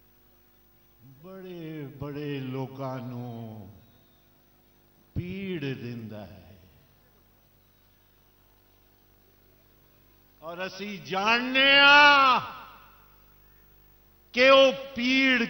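An elderly man speaks forcefully into a microphone over loudspeakers, with pauses between phrases.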